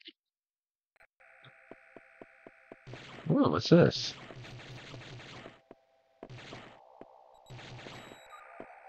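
Electronic beeps and tones play steadily.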